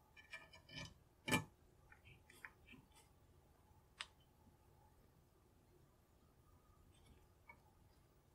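Metal parts clink and tap against each other as a small mechanism is handled.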